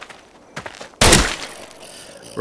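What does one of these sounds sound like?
A pistol fires a single loud shot.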